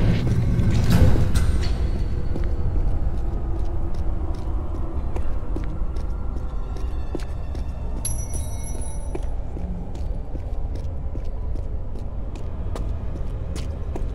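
Footsteps run quickly across a stone floor.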